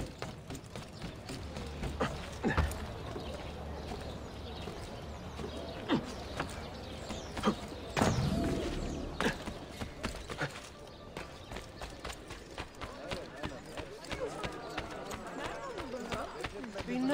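Quick footsteps run across rooftops and stone paving.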